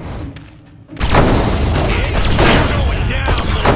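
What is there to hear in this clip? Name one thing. A large explosion booms loudly.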